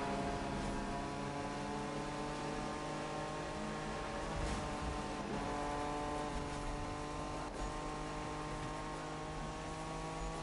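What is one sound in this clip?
Tyres hiss on the road at speed.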